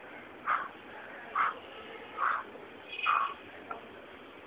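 A young man exhales sharply with each dip.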